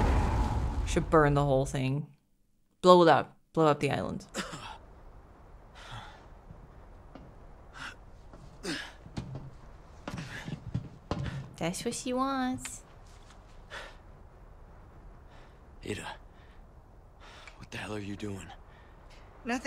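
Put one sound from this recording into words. A young woman talks casually into a nearby microphone.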